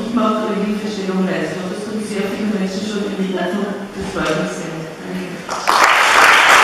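An elderly woman speaks with animation in a large echoing hall.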